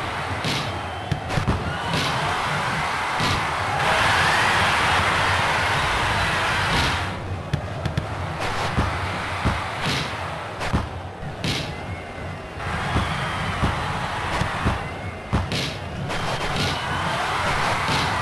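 A ball thuds when it is kicked.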